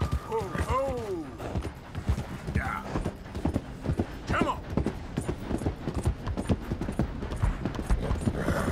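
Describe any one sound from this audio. Horse hooves clop steadily on gravel and wooden sleepers.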